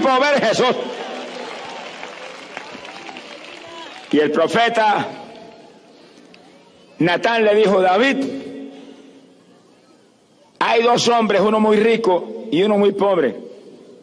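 An elderly man speaks forcefully into a microphone, in short bursts that echo across a large open space.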